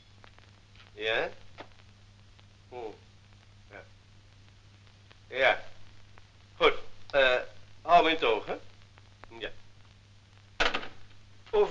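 An elderly man talks calmly into a telephone.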